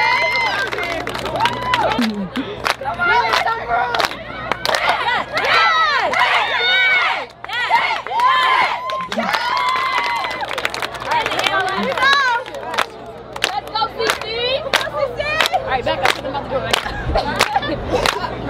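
A group of young women chant and cheer loudly outdoors.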